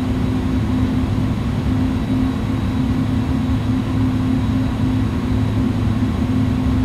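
Jet engines hum steadily with a low drone.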